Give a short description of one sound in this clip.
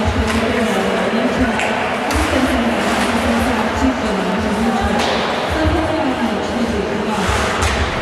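Skates scrape and carve across ice in an echoing rink.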